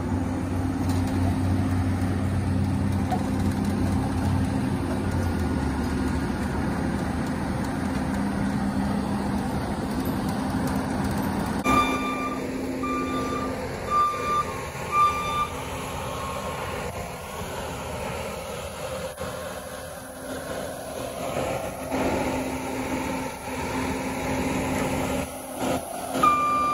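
A loader's diesel engine rumbles steadily close by.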